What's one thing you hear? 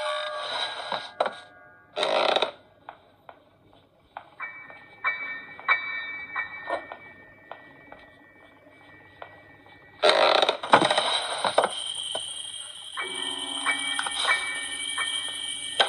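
Fingers tap lightly on a glass touchscreen.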